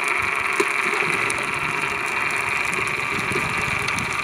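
Air bubbles rush and gurgle underwater.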